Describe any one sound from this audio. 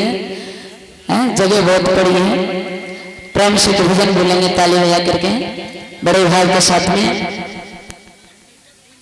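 A young woman sings loudly through a microphone, echoing over loudspeakers.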